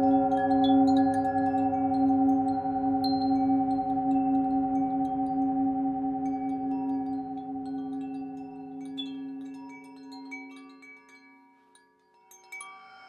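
A metal singing bowl rings with a steady, humming tone that slowly fades.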